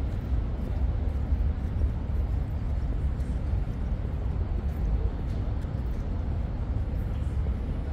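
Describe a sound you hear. Water laps gently against a waterside wall.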